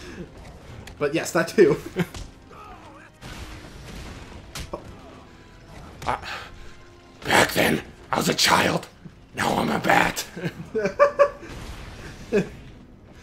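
Punches and kicks land with heavy, rapid thuds in a brawl.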